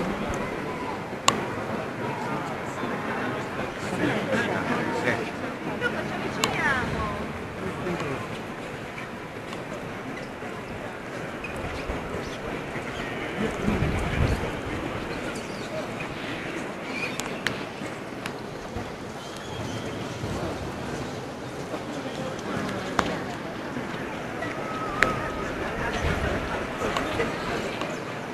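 A crowd of visitors murmurs throughout a large echoing hall.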